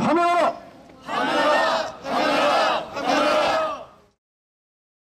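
A crowd of older men and women chants loudly in unison.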